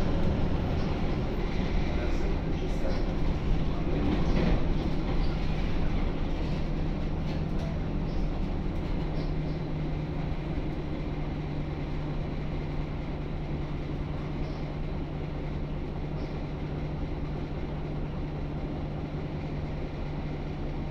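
A bus engine hums steadily as the bus drives.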